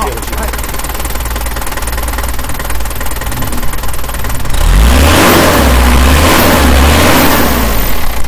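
A car engine idles with a rapid, even ticking clatter.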